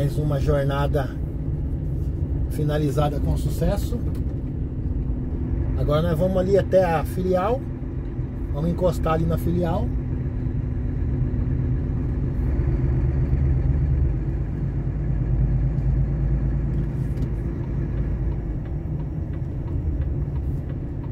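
A vehicle's engine drones as it drives along a road.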